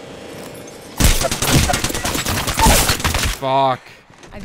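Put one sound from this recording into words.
Gunfire bursts loudly in rapid shots.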